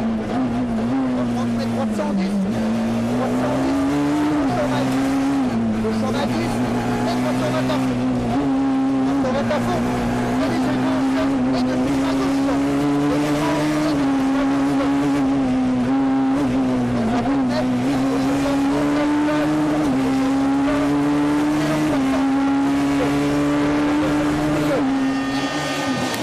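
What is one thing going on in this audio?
A rally car engine roars loudly from inside the car, its pitch climbing and dropping with gear changes.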